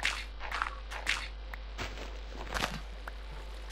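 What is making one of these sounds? Dirt crunches in short bursts as it is dug.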